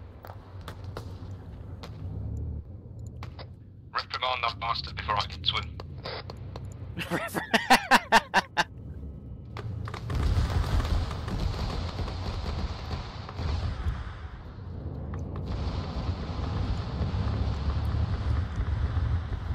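Heavy explosions rumble and boom.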